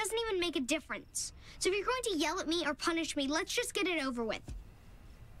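A young boy speaks quickly and with animation, close by.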